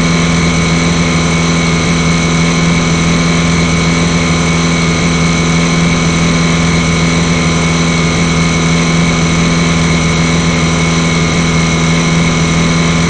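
Water splashes against a speeding boat's hull.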